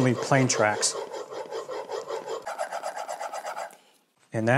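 A steel blade scrapes back and forth across a sharpening stone in quick, even strokes.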